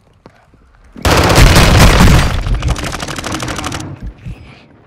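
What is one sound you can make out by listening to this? Rapid gunfire bursts loudly and close by.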